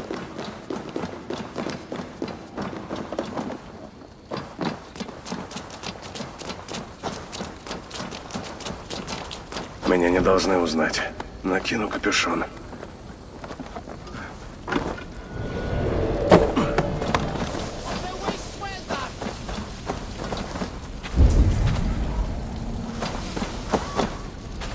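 Footsteps thud quickly on wood and earth.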